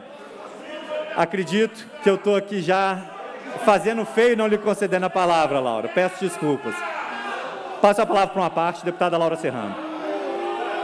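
A man speaks into a microphone with animation, heard through a loudspeaker in a large hall.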